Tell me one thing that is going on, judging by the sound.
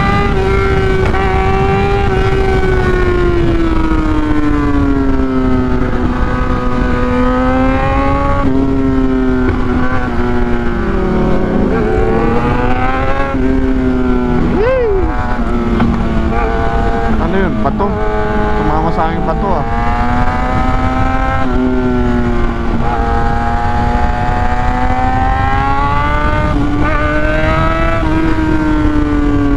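A motorcycle engine hums steadily and rises and falls in pitch as the rider shifts gears.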